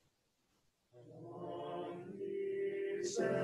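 A group of teenage boys sings together loudly in an echoing hall.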